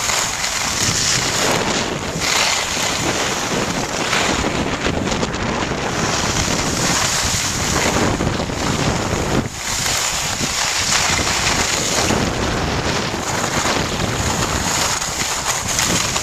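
Skis scrape and hiss over packed snow close by.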